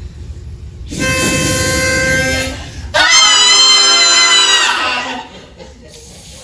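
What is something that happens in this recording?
A young man sings out loudly in a held, wavering tone.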